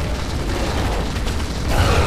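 Anti-aircraft cannons fire in heavy bursts.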